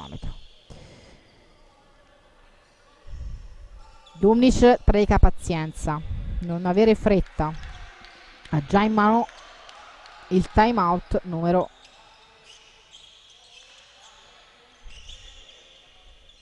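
Sneakers squeak on a hard court floor in a large hall.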